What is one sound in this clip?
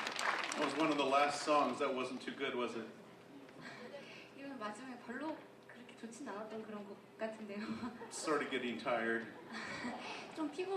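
A man talks calmly through a microphone in a large hall.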